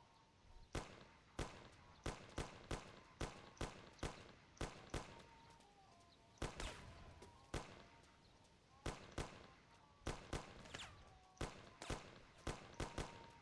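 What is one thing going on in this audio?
Gunshots fire in rapid, uneven bursts.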